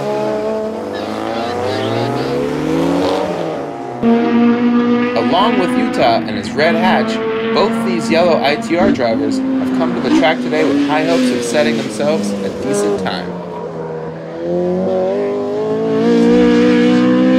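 A car engine revs hard, rising and dropping in pitch as it shifts gears.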